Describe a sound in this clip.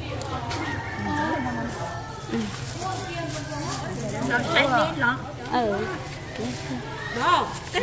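A plastic bag rustles and crinkles as herbs are stuffed into it.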